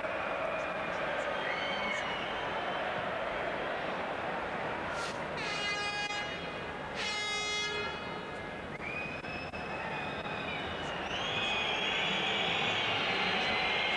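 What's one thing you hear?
A large stadium crowd roars and chants steadily outdoors.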